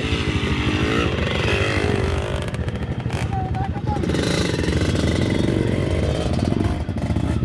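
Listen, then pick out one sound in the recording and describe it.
Another dirt bike engine idles nearby.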